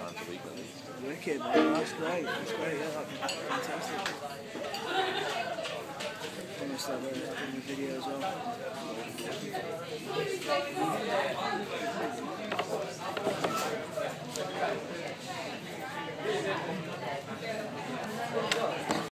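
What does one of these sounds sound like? A guitar is strummed through a loudspeaker in a busy room.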